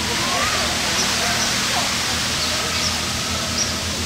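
A bear splashes through shallow water.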